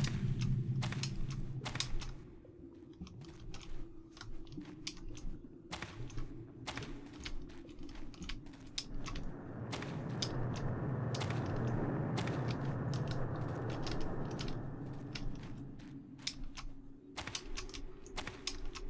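Footsteps tap steadily on a stone floor in an echoing passage.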